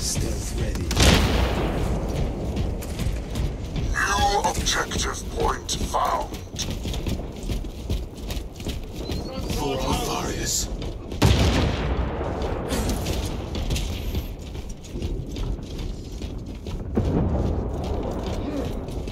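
Heavy guns fire with loud booming blasts.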